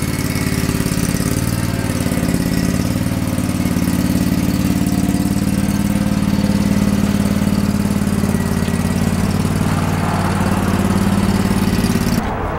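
A riding mower engine rumbles steadily close by as the mower drives past.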